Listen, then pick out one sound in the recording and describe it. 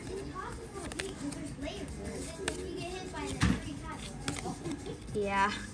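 Trading cards slide and flick against each other in a hand.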